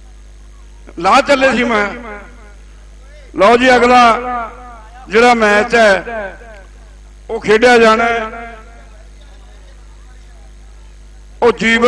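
A man calls out loudly in bursts through a loudspeaker.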